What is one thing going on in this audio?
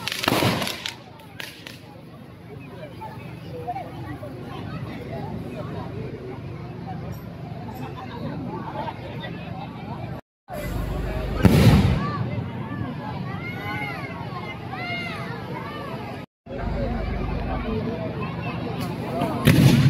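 Fireworks burst with loud booming bangs.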